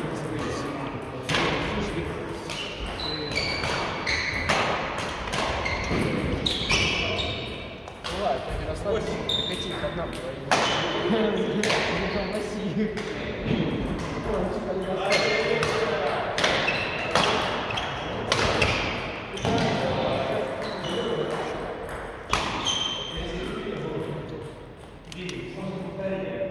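Badminton rackets smack shuttlecocks in quick rallies in an echoing hall.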